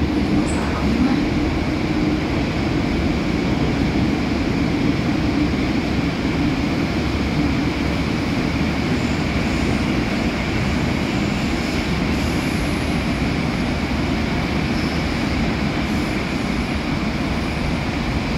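A subway train rumbles and roars loudly along the tracks.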